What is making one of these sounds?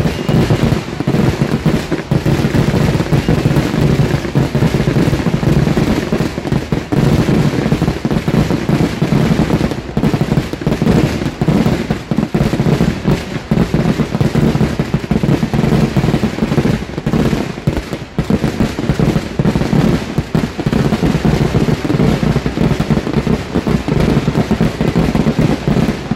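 A rapid barrage of firework bangs booms and crackles outdoors without a break.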